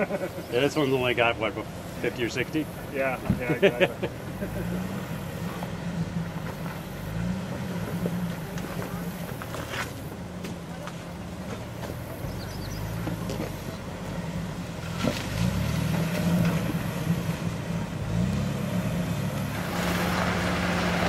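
An off-road SUV engine rumbles as it crawls in low gear.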